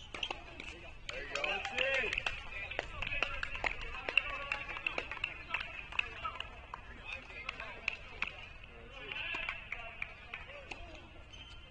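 Young men and women chatter and call out nearby, outdoors.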